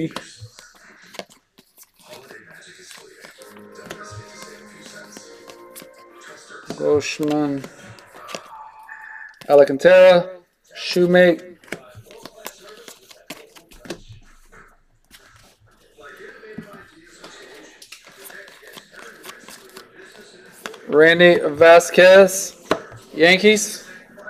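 Trading cards rustle and slide as they are shuffled by hand.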